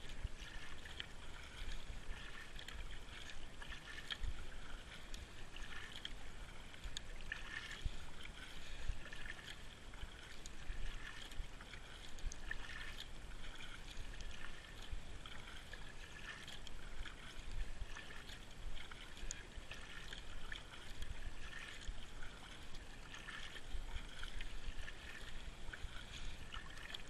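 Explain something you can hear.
Water ripples and laps against the bow of a kayak.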